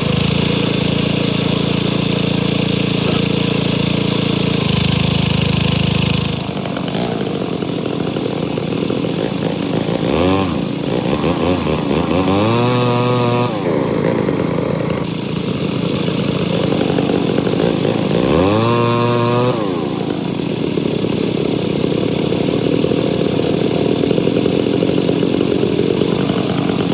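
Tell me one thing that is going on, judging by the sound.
A petrol engine runs steadily close by.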